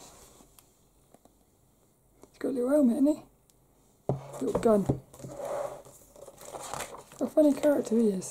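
Glossy paper pages rustle as they are turned.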